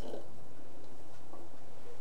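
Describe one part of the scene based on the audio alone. Water trickles softly from a ladle into a bowl.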